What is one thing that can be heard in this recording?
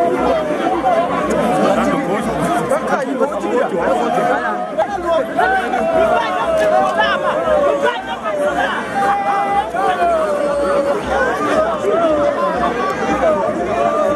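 A large outdoor crowd chatters and sings loudly.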